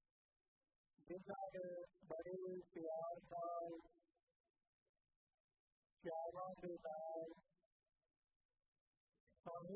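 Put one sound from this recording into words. An elderly man sings a slow prayer into a microphone, in phrases with pauses.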